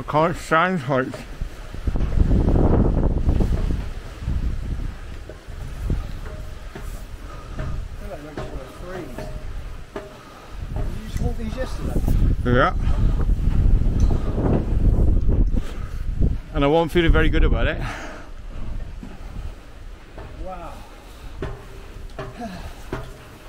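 Wind blows hard and gusts outdoors.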